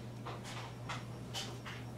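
An acoustic guitar is softly strummed.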